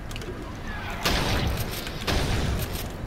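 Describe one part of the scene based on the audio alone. A fireball explodes with a loud boom.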